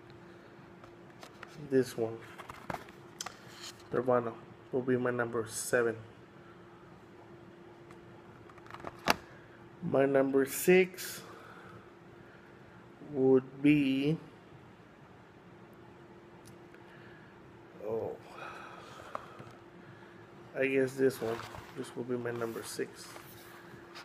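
Cardboard boxes slide and tap on a table.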